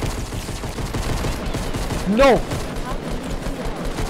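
Gunshots from a shotgun fire in quick bursts.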